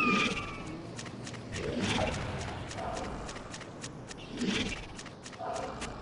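Water splashes as a character wades through it.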